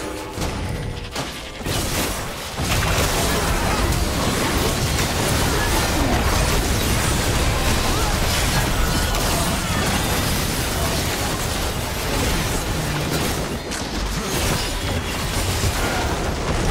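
Video game spell effects crackle, whoosh and boom in a fast battle.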